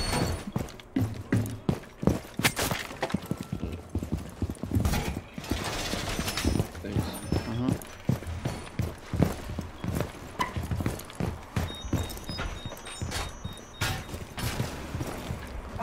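Footsteps thud steadily across hard floors.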